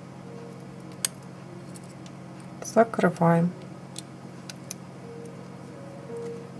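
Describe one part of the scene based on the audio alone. Small metal pliers click and tap softly.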